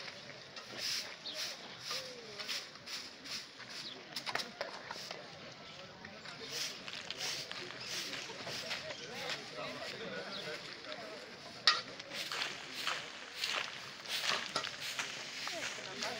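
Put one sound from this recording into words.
Brooms sweep and scrape repeatedly on pavement.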